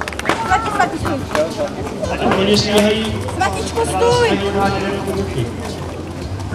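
A crowd of adults and children chatters nearby outdoors.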